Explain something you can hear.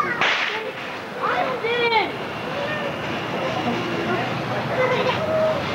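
Ground fireworks fizz and sputter with bursts of sparks.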